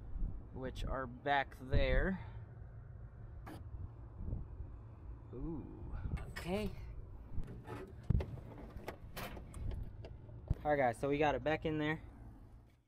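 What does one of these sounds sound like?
A metal panel door clicks and rattles as it is handled.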